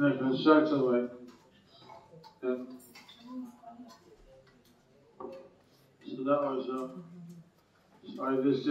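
A man speaks slowly and calmly into a microphone, with pauses.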